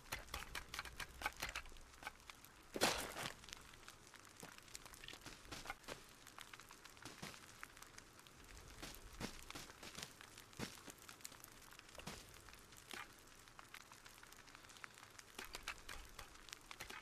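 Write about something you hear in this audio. Short clicks and clatters sound as items are picked up and put down.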